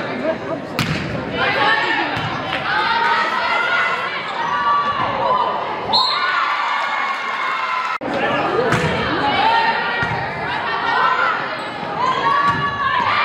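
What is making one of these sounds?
Young women shout and call to each other in an echoing gym.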